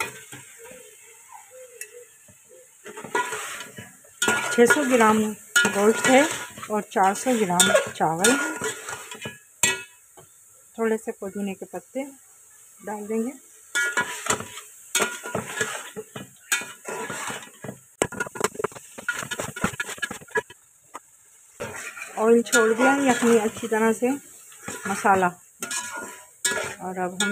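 A metal spatula scrapes and clatters against a pan while stirring food.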